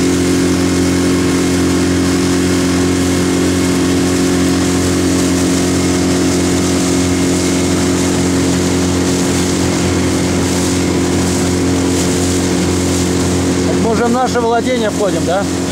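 Water rushes and splashes against the hull of a moving boat.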